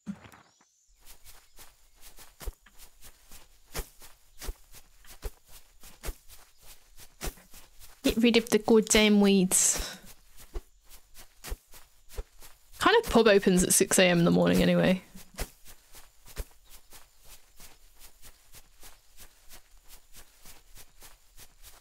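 Quick light footsteps tap steadily.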